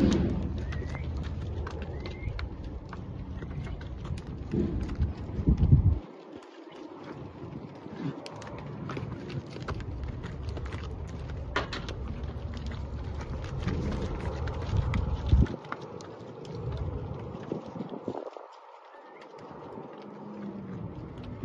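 Cattle hooves shuffle and thud on dirt.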